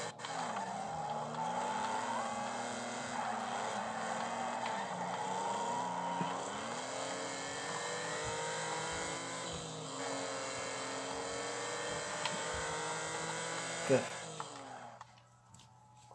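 A racing car engine roars and revs loudly, rising and falling in pitch.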